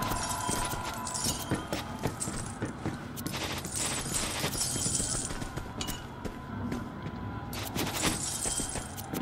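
Video game loot clinks and chimes with bright sparkling tones.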